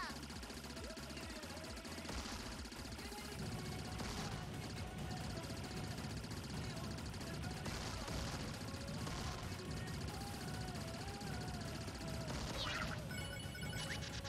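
Rapid shots fire and crackle in a game.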